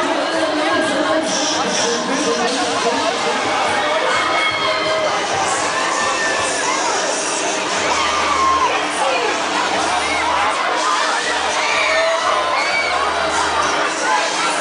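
A crowd of riders screams on a swinging fairground ride.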